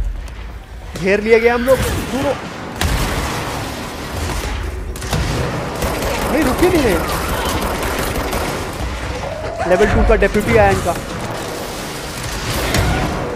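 Gunfire and explosions boom from a game.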